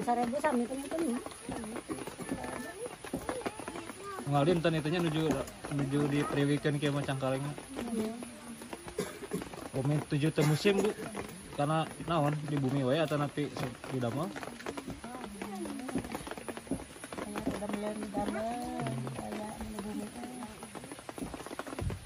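Women talk casually nearby, outdoors.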